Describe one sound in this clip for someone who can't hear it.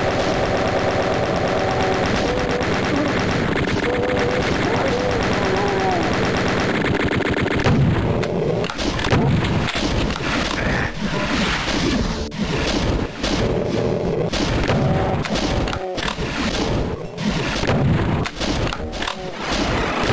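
Game gunshots boom repeatedly.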